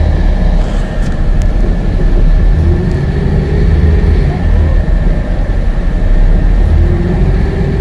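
A train rumbles steadily along elevated tracks.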